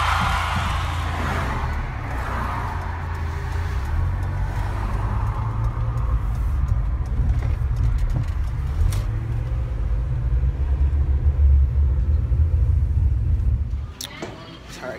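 A car engine rumbles steadily from inside the car as it drives.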